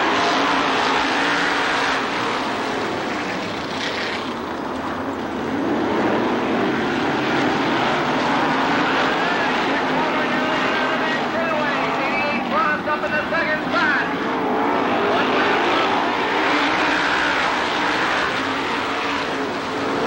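A crowd cheers and chatters outdoors.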